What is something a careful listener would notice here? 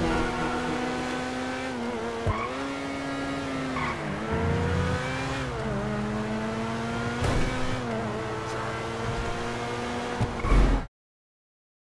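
A car engine roars steadily, its pitch rising and falling as it shifts gears.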